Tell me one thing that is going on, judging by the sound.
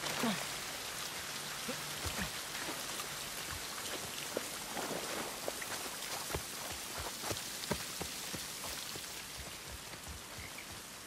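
Footsteps splash on wet ground.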